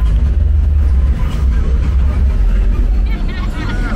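A car drives slowly past on the street.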